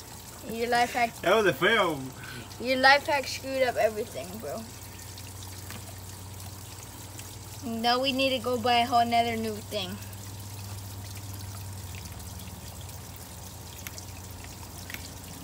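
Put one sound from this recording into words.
Water trickles from a hose into a plastic container.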